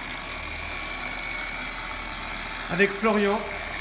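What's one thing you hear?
A power polisher whirs steadily against a car body.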